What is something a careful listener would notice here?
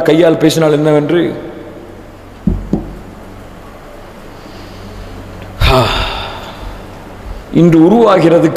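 A young man chants in a long drawn-out voice through a microphone.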